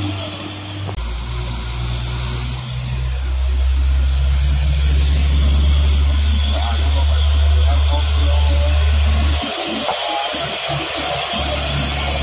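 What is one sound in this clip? A second truck's diesel engine drones deeply as it climbs slowly past.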